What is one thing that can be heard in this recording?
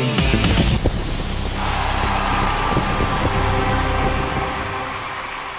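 Loud dance music with a heavy beat plays from a DJ's decks.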